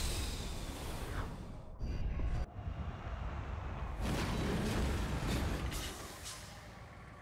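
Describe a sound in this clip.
A vehicle's thrusters roar as it drops and lands heavily.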